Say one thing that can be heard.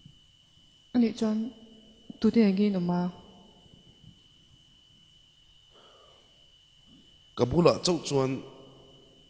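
A man speaks into a microphone over loudspeakers.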